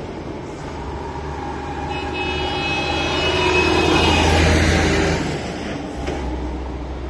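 A heavy truck engine roars as the truck drives past close by and fades away.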